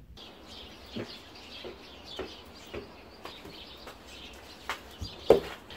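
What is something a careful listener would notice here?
Footsteps tap on a hard porch floor.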